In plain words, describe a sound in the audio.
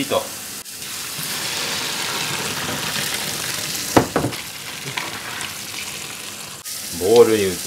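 Hot water and noodles splash as a pot is poured into a strainer.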